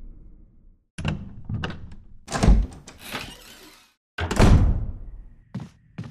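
A heavy wooden door creaks open and slowly swings.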